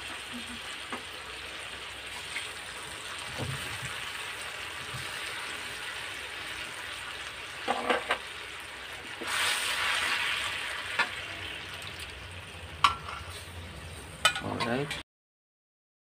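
Liquid sizzles in a hot wok.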